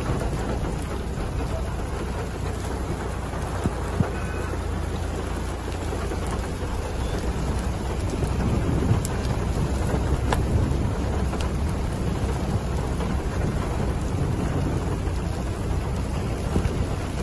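Strong wind blows and gusts outdoors.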